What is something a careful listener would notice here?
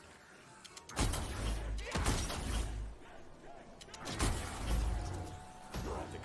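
Heavy guns fire in loud, booming bursts.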